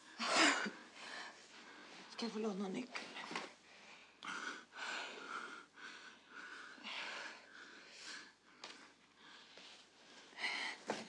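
A man speaks softly and urgently, close by.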